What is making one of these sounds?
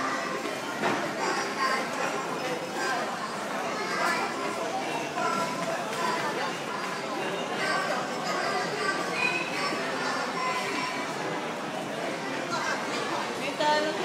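A coin-operated kiddie ride plays a tinny electronic tune through a small loudspeaker.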